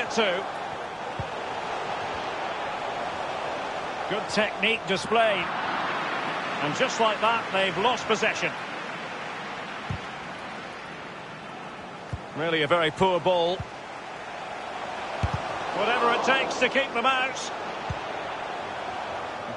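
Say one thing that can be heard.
A crowd roars steadily in a stadium.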